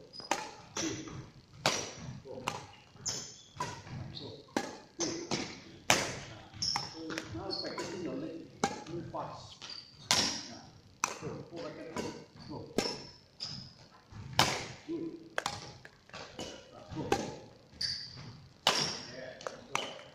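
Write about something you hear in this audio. Badminton rackets strike a shuttlecock back and forth in a quick rally, echoing in a large hall.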